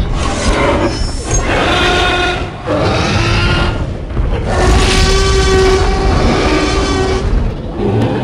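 Heavy dinosaur footsteps thud on the ground.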